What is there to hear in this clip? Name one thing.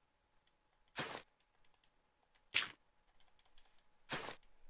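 A block of dirt crunches as it is dug out, several times in short bursts.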